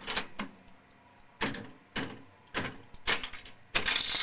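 The reels of a mechanical slot machine clunk to a stop.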